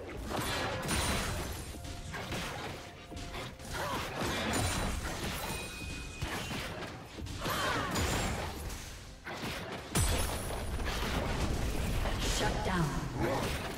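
Spell effects crackle and burst in a fast game battle.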